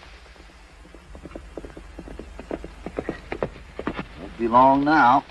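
Horse hooves clop on dirt.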